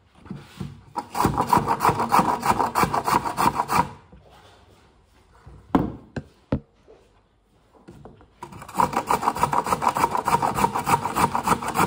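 A carrot scrapes rapidly against a metal grater.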